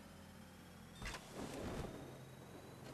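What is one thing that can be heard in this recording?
A parachute bursts open with a sharp whoosh.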